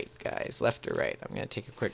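Playing cards are set down on a table.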